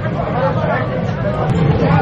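Oil sizzles as food fries.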